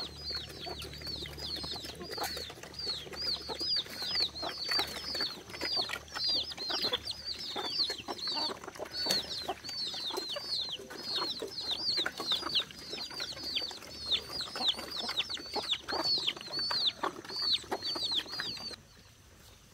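Pigs grunt and snuffle as they feed.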